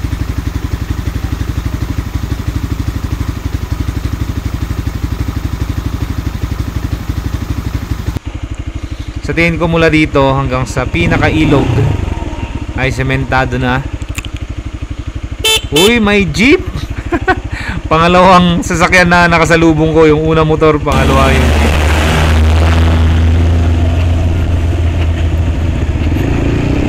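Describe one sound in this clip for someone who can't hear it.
A motorcycle engine putters steadily close by.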